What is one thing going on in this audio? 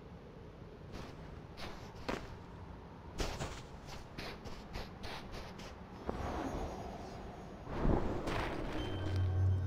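Wind whooshes as a figure glides through the air.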